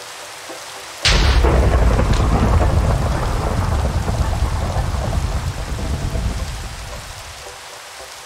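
Thunder cracks sharply and rumbles away.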